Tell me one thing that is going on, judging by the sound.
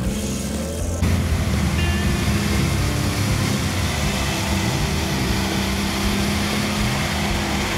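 Tyres churn and slosh through wet mud.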